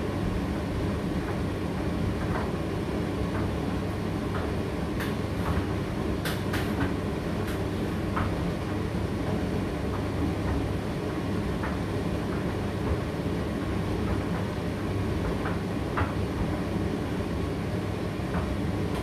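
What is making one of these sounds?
A condenser tumble dryer hums and rumbles as it runs.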